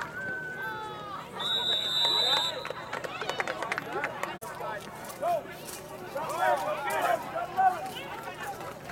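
A crowd cheers and shouts outdoors.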